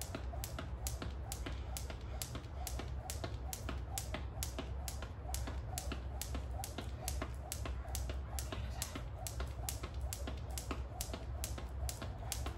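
A jump rope slaps the ground in a quick, steady rhythm.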